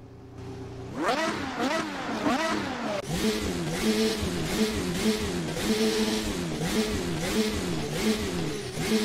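A racing car engine revs up and down over and over.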